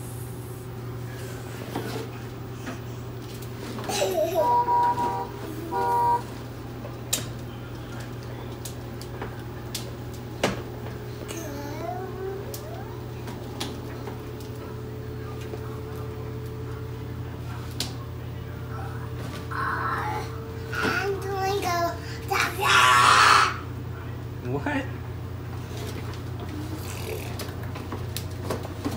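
Plastic wheels of a toy ride-on car rumble across a wooden floor.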